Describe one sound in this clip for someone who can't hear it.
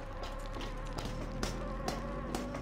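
Hands and boots clang on a metal ladder.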